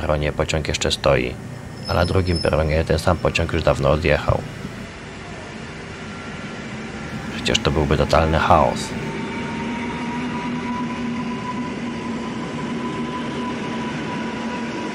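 An electric train rolls slowly past with a low, steady rumble.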